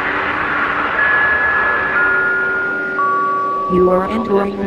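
A warning chime sounds three falling tones.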